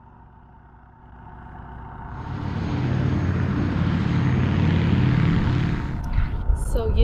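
A propeller plane's engine roars as it flies low overhead.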